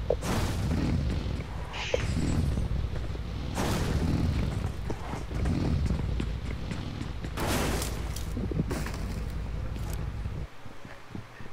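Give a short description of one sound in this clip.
A buggy engine rumbles and revs steadily.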